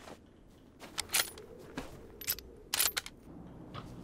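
A young woman talks.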